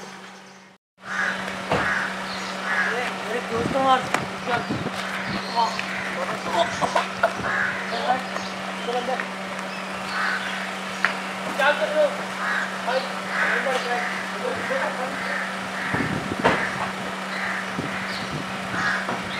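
Young men argue and shout at each other up close.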